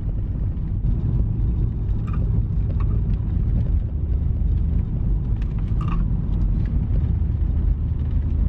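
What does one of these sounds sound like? Tyres roll on a wet road with a low rumble.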